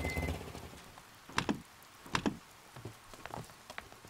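A car door opens and shuts with a clunk.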